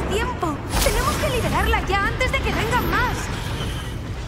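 Magical sparks chime and whistle with quick rising and falling tones.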